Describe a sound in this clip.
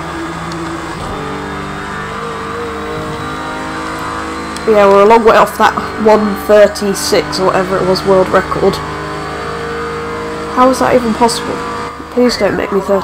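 A racing car engine roars at high revs and shifts up through the gears.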